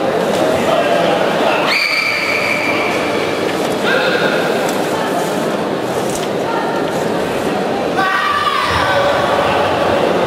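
A man calls out sharp commands.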